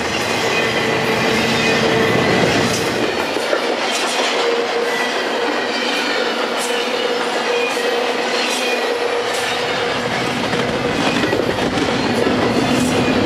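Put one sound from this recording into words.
Steel wheels squeal and screech on the rails.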